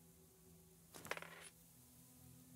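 A short jingling chime rings once.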